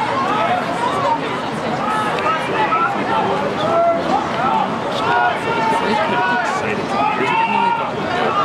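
Young men shout and call to each other outdoors on an open field.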